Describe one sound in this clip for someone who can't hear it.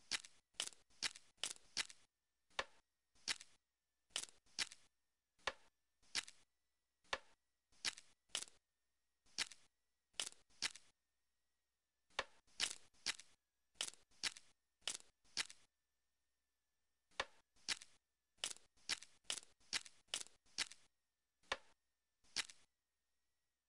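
Puzzle pieces snap into place with short, sharp clicks, many times.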